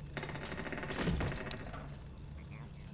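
A revolver fires a single loud shot that echoes briefly.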